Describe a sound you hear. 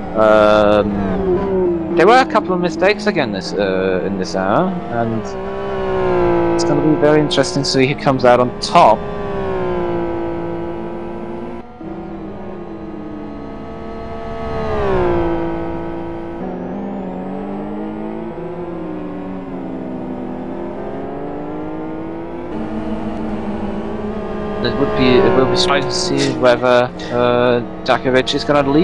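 A racing car engine roars, revving up and down through the gears.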